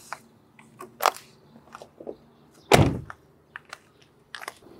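Footsteps scuff on paved ground beside a car.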